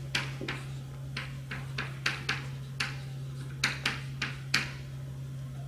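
Chalk taps and clicks sharply against a blackboard.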